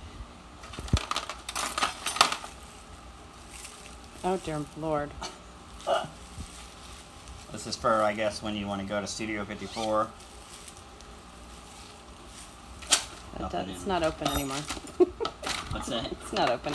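Items rustle and clatter as they are handled.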